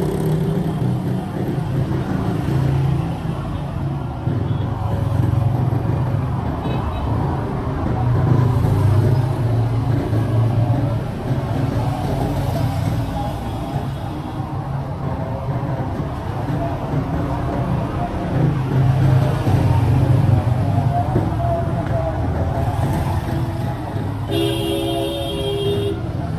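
Motorcycle engines hum as they pass on a street.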